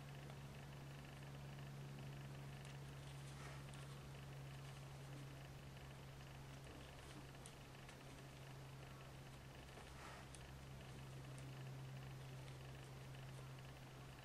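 Knitting needles click and tick softly against each other.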